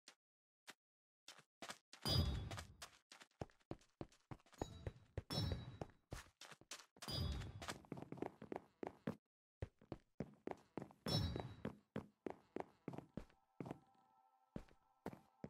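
Footsteps tap quickly on hard blocks.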